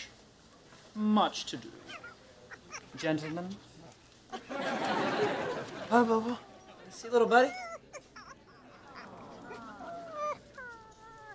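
A man speaks cheerfully.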